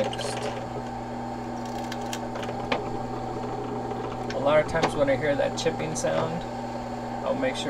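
A drill bit grinds into metal.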